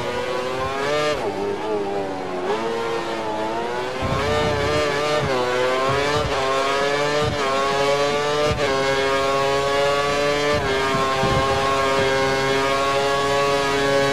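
A racing car engine screams at high revs, rising through the gears with sharp drops at each shift.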